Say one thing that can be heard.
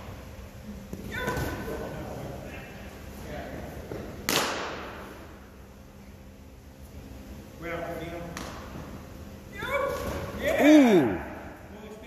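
A man calls out instructions in an echoing indoor hall.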